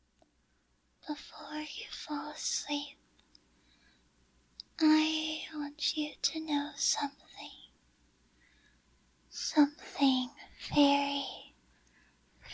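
A young woman speaks softly and shyly, close to a microphone.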